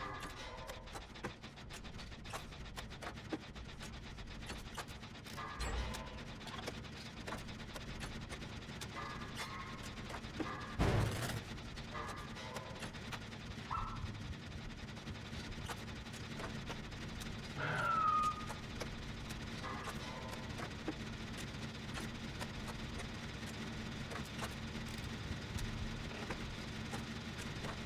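Metal parts clatter and rattle as a machine is repaired.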